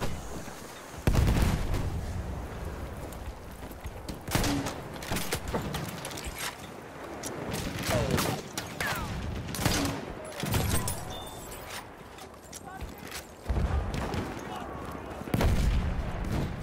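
Explosions boom loudly nearby.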